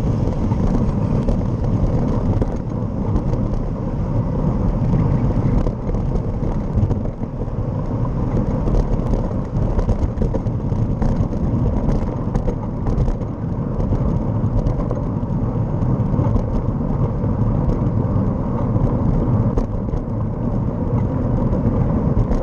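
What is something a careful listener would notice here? Wind rushes and buffets loudly past a moving bike.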